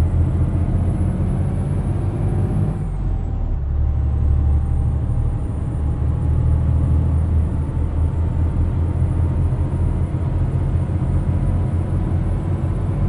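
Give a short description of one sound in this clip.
Tyres roll with a steady hum on a road.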